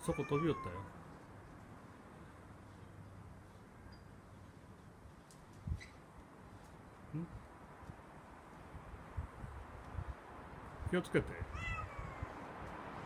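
A cat meows nearby.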